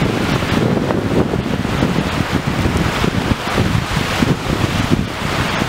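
Small waves lap onto a shore.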